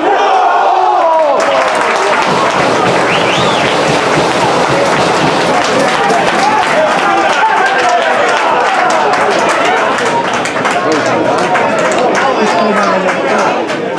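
A crowd of young men cheers and shouts outdoors.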